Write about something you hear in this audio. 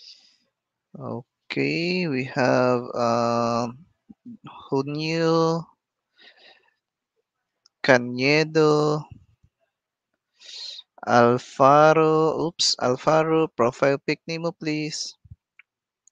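A young man speaks calmly into a headset microphone, heard close up.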